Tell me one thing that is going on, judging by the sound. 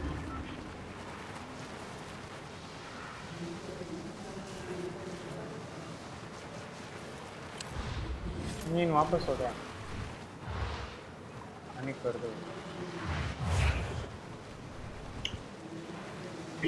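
A board skids and rumbles over dirt and grass.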